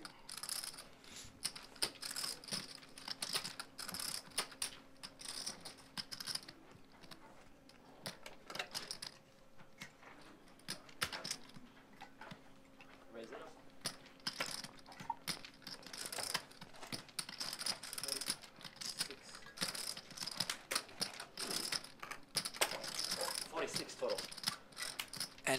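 Poker chips click and clatter together as they are shuffled in a hand.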